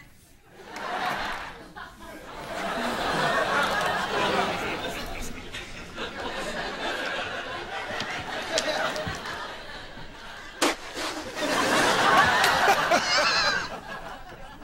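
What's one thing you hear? A studio audience laughs loudly.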